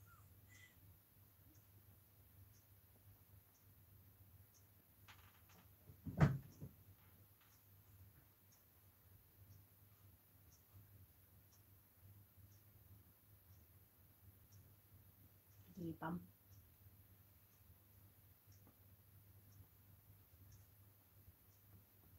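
A sponge dabs softly against a doll's head.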